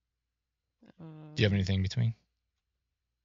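A middle-aged man speaks in a low, tense voice.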